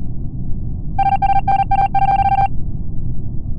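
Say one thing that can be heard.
Rapid electronic beeps tick out in quick bursts.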